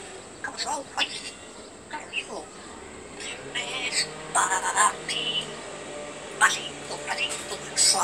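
A parrot's claws and beak clink on metal cage bars.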